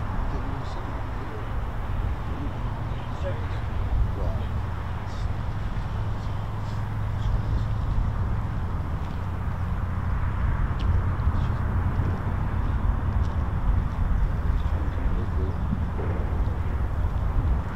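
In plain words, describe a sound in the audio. A van drives by in the distance with a low engine hum.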